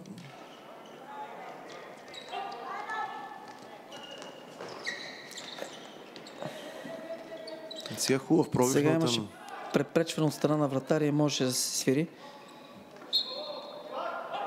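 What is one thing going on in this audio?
Shoes squeak on a hard indoor floor.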